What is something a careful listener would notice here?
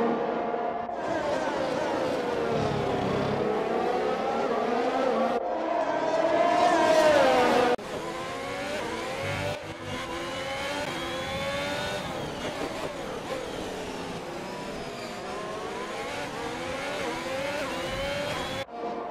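Racing car engines whine at high revs, rising and falling in pitch as the cars shift gears.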